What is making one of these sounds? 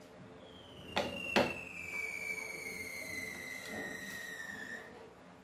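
A metal plate clanks and scrapes against a metal frame.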